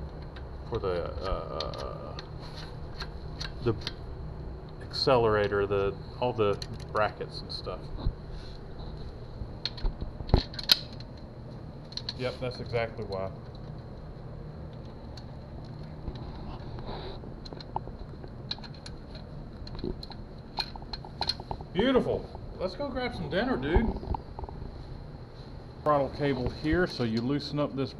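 Metal parts click and clink under working hands.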